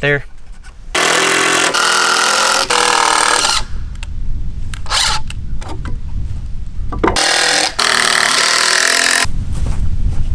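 A power drill whirs in short bursts.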